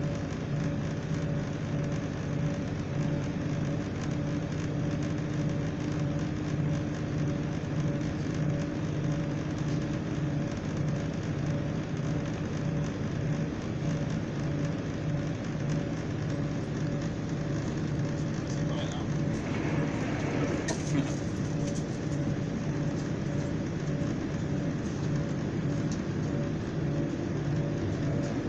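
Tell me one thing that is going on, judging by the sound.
A train rumbles steadily along the tracks, heard from inside the carriage.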